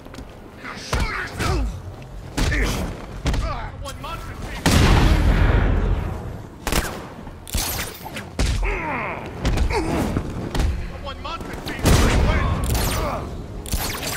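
Blows land hard in a fistfight.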